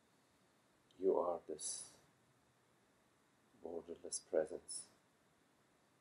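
A middle-aged man speaks calmly nearby in short phrases.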